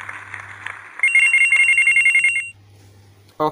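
Game chimes ring out as a level ends.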